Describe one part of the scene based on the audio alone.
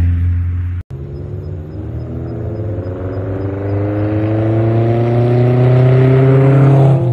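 A second sports car engine revs higher and louder as it approaches.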